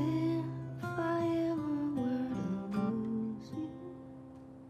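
A young woman sings softly to an acoustic guitar.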